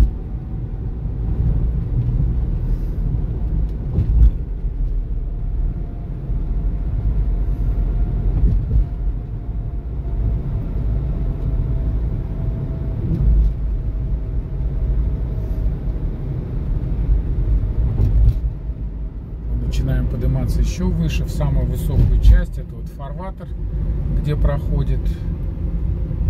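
A car's engine hums steadily and its tyres rumble on the road, heard from inside the car.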